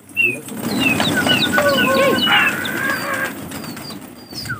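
Many pigeons flap their wings noisily as they take off.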